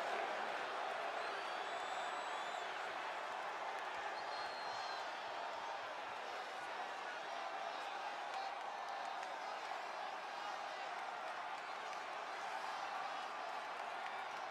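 A large crowd cheers and murmurs in a large arena.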